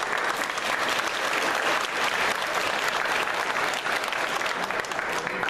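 A large children's choir sings loudly in an echoing hall.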